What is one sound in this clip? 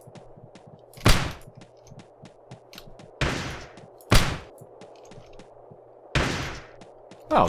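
A gun fires in short, sharp blasts.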